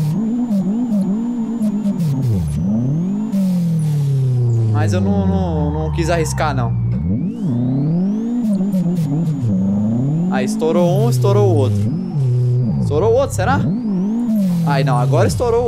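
A car engine revs hard, rising and dropping in pitch with each gear change.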